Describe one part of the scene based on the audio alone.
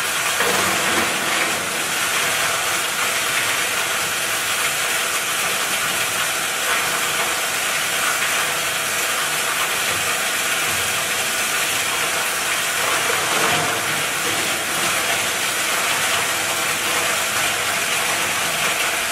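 A crusher machine roars loudly and steadily.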